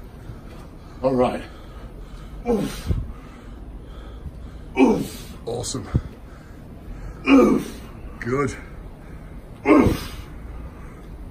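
A man exhales sharply with each pull.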